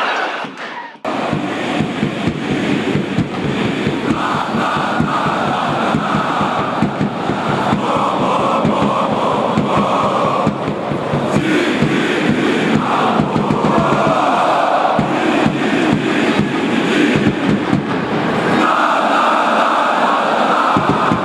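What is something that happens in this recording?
A huge crowd of fans chants loudly and rhythmically close by, echoing around a stadium.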